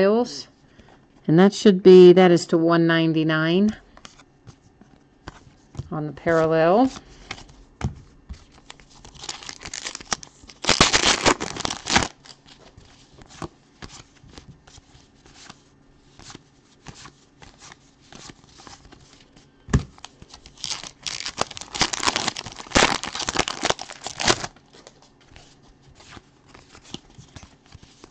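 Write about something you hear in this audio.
Trading cards flick and rustle against each other.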